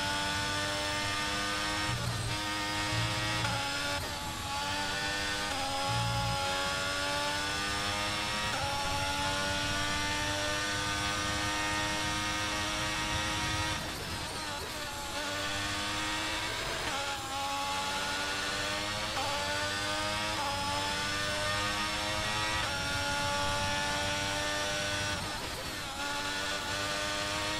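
A racing car engine screams at high revs, rising through each gear and dropping sharply at each gear change and braking.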